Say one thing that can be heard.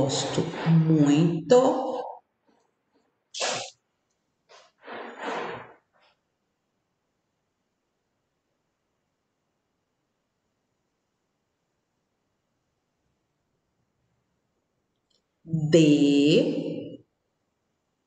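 A woman speaks calmly and clearly into a nearby microphone, with long pauses.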